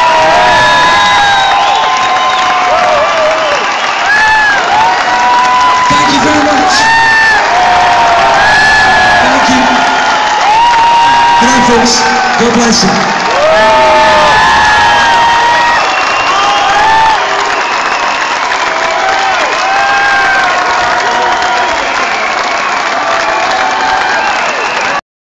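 A large crowd cheers and whistles loudly in a big echoing hall.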